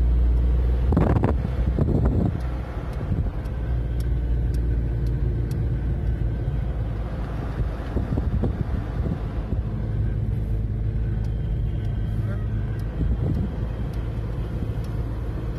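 Wind rushes past the open car window.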